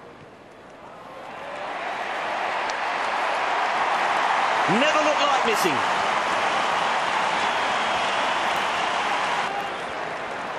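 A large stadium crowd roars and cheers loudly, swelling then easing.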